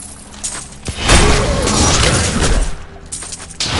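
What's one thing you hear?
A fiery blast bursts with a loud roar.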